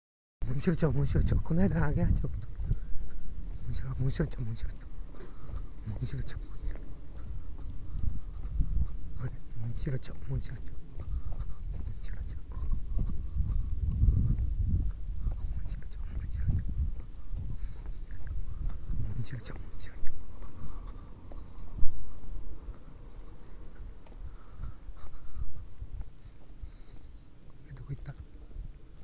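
Footsteps walk steadily on a paved path outdoors.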